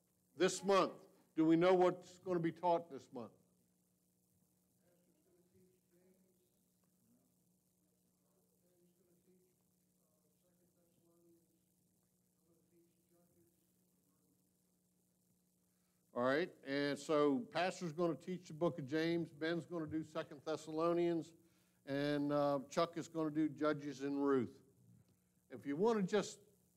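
An elderly man speaks through a microphone in a large echoing hall.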